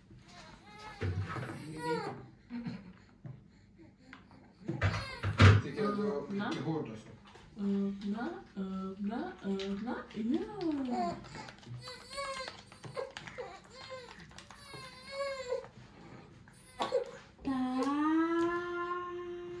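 Two babies coo and babble close by.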